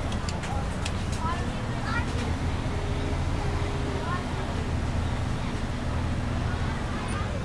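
A school bus engine rumbles as the bus drives along a street.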